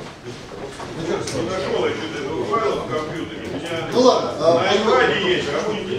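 A man lectures calmly, heard through a microphone.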